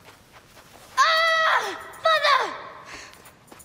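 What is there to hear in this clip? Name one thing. A boy screams loudly nearby.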